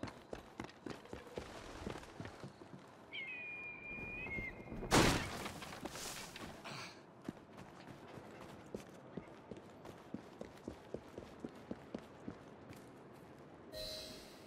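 Footsteps patter quickly as a man runs.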